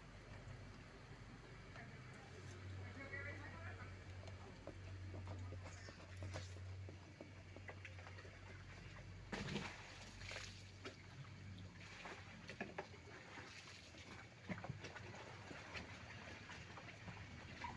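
Water swirls and splashes inside a plastic barrel.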